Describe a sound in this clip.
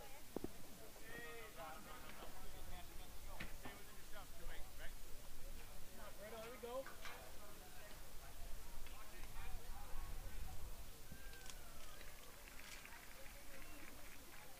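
Young men call out and chatter across an open field outdoors.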